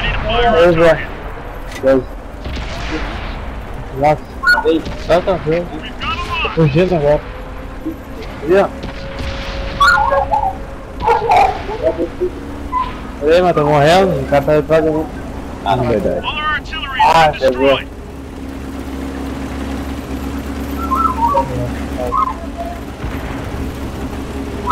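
Tank cannons fire with sharp booms.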